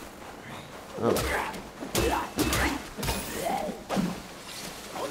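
A staff swings and strikes with heavy thuds.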